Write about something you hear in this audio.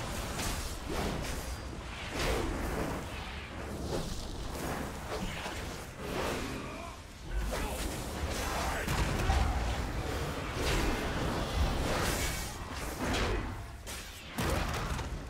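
Magic spells whoosh and burst in a fierce fight.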